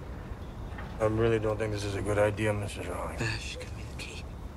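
A man speaks in a low, calm voice nearby.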